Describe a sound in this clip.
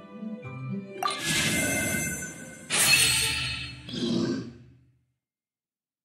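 A bright magical chime swells and shimmers, then fades away.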